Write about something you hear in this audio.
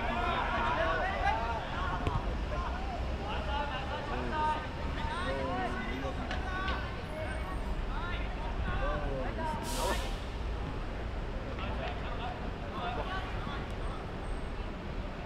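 Children shout and call out to each other across an open outdoor pitch.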